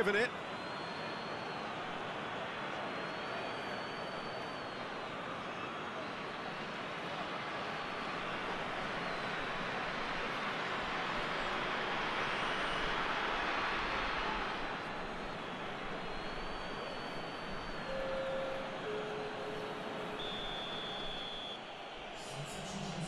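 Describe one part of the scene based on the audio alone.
A large stadium crowd roars steadily, swelling louder for a while.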